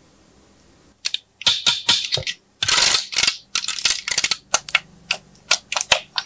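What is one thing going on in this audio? A plastic tray crackles and clicks as hands handle it.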